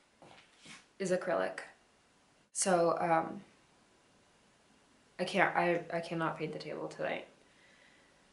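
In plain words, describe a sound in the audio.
A young woman speaks calmly close by, in short bursts.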